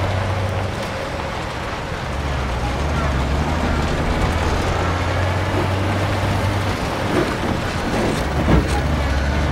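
A truck engine rumbles low and steady as the truck drives slowly away.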